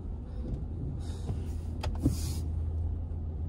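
A windshield wiper swishes across the glass.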